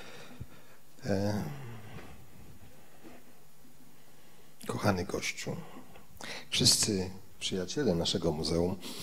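A middle-aged man speaks with animation into a microphone in a large, echoing room.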